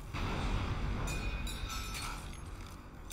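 Sparks crackle and hiss from a burning fire.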